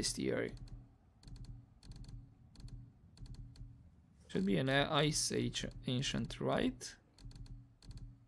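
Short soft ticks repeat as a game menu is scrolled.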